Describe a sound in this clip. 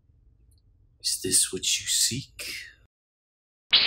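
A young man speaks up close.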